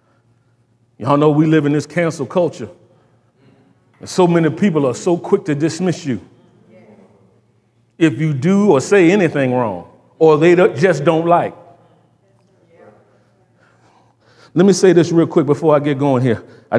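A man speaks with animation to an audience.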